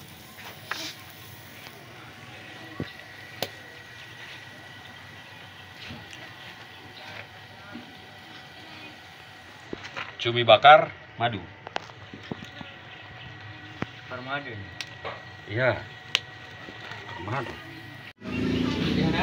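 Meat sizzles softly over a charcoal grill.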